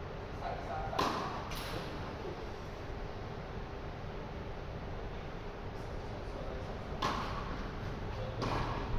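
Tennis balls are struck with rackets in a large echoing hall.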